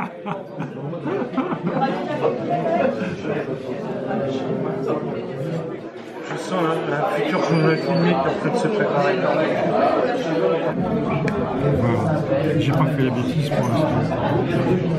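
Men and women talk over one another nearby, with the voices echoing slightly around the room.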